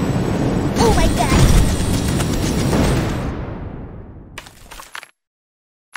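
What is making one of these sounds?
An explosion booms and fades away.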